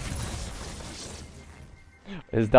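An explosion bursts and rumbles.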